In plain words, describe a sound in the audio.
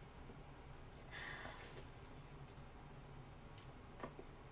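A young woman slurps noodles.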